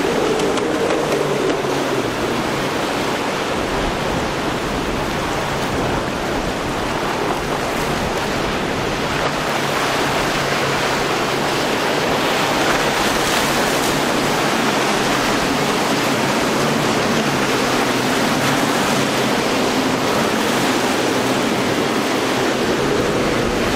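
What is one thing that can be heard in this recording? Outboard engines roar steadily as a motorboat speeds past.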